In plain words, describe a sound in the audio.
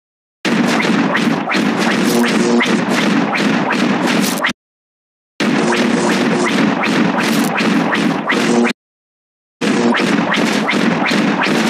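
Game shots pop rapidly.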